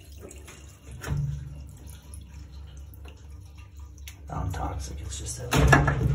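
Liquid trickles out into a drain.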